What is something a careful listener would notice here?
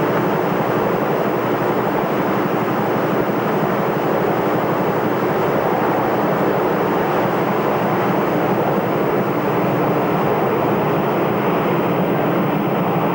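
A large jet airliner's engines roar steadily as it rolls along a runway.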